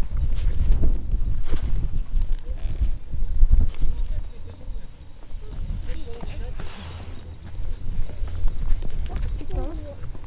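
Footsteps crunch on stony ground.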